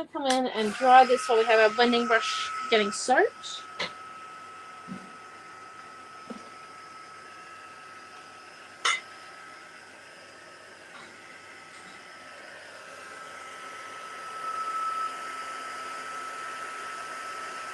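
A heat gun whirs with a steady whine and rush of air.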